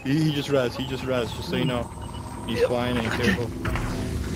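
A man shouts excitedly over an online voice chat.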